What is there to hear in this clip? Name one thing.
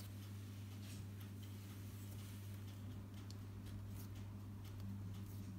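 A metal spoon presses and scrapes softly into soft dough.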